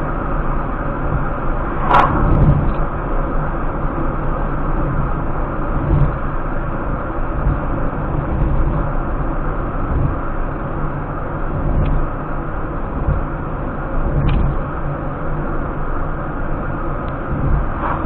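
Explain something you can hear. A car drives steadily along a road, its engine and tyres rumbling from inside the cabin.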